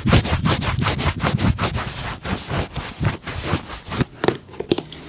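A cloth rubs briskly against a leather shoe.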